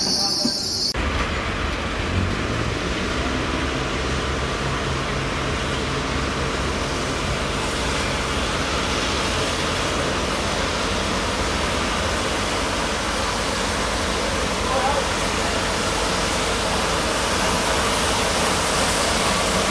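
A locomotive approaches slowly from a distance, growing louder.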